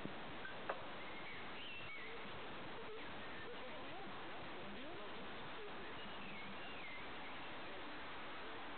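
Young men call out to each other nearby outdoors.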